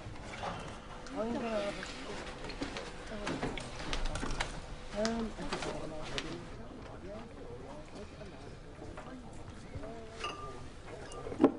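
Young men and women talk together close by, overlapping at times.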